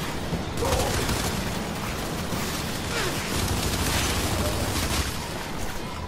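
Rifle gunfire rattles in rapid bursts.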